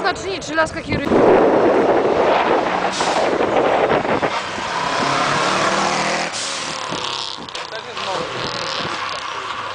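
Car tyres squeal on asphalt as the car drifts.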